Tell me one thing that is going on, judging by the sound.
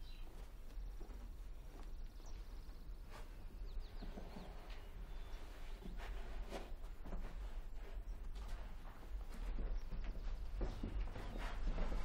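Soft knocks and rustling come from a young man moving about close by.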